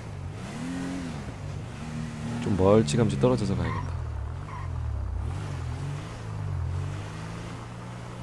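A car engine hums steadily, its pitch rising and falling as the car drives.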